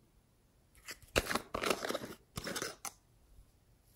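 Foam beads rattle inside a plastic jar.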